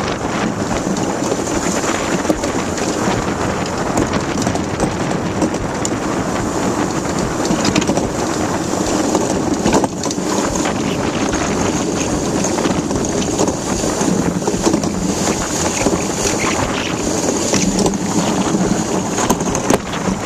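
Wind rushes loudly past outdoors.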